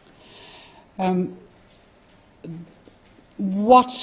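An elderly woman speaks slowly with pauses, close to a microphone.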